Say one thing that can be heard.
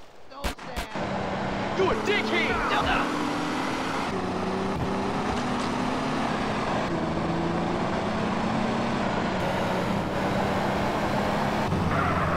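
An off-road vehicle's engine hums steadily as it drives.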